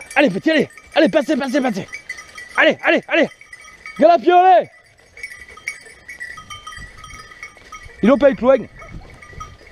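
Dogs bark and yelp excitedly nearby.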